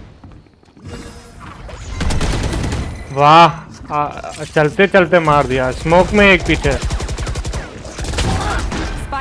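Gunshots fire rapidly.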